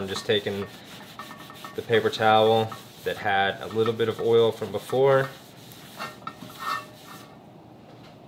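Butter sizzles as it is rubbed across a hot pan.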